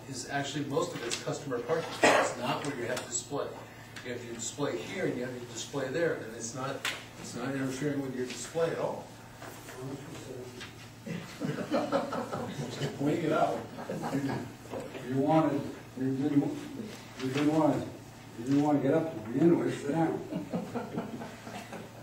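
An elderly man speaks calmly to a group in a room with some echo.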